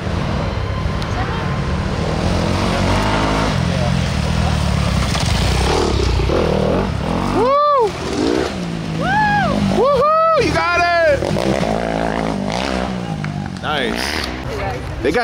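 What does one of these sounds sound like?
Dirt bike engines rumble and rev close by.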